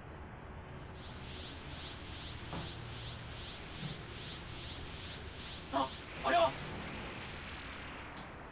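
Electricity crackles and buzzes in rapid pulses.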